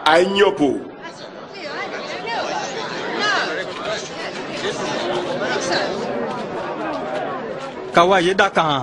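A crowd murmurs and chatters excitedly.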